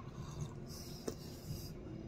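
An elderly man sips a drink.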